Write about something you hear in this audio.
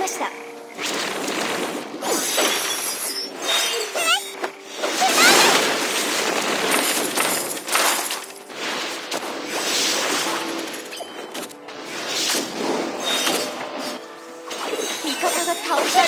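Game spell effects whoosh and crackle in quick bursts.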